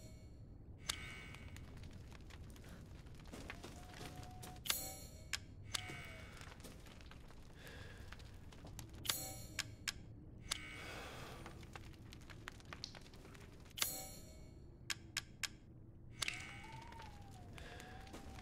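A key rattles in the lock of a wooden chest.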